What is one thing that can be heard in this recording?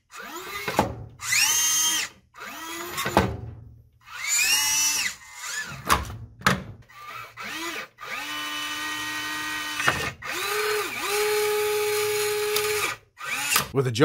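A small servo motor whines in short rising and falling bursts.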